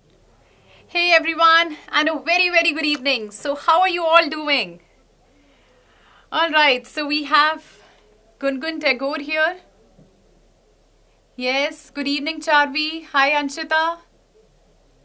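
A young woman speaks cheerfully and clearly into a close microphone.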